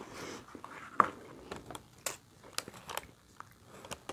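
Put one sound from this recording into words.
Crispy food crackles as it is torn apart by hand.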